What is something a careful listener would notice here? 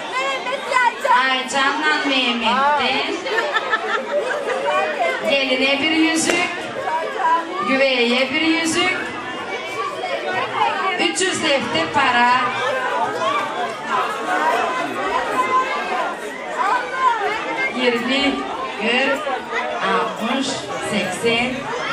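A middle-aged woman speaks with animation through a microphone over loudspeakers in a large echoing hall.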